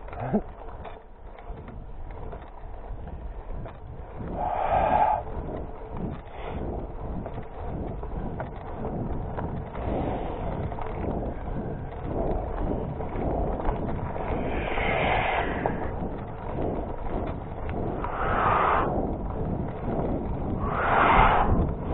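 Bicycle tyres crunch and rattle over a gravel track.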